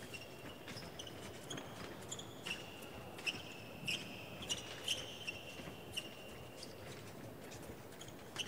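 Footsteps tap and shuffle quickly on a hard floor.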